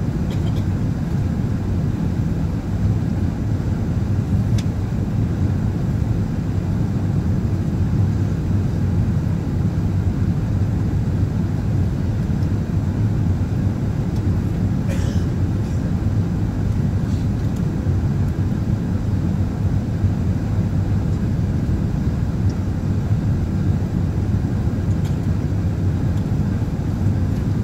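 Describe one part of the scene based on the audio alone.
A jet airliner's engines roar steadily inside the cabin.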